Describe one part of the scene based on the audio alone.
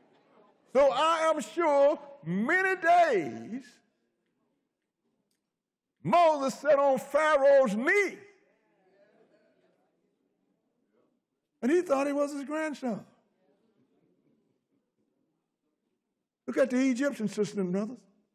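An elderly man preaches with animation through a microphone, in bursts with pauses between.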